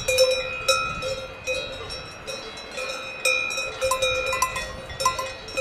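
A cowbell clanks and rings repeatedly close by.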